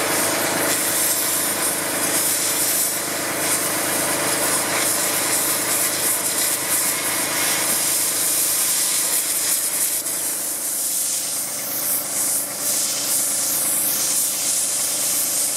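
A cutting torch roars and hisses steadily.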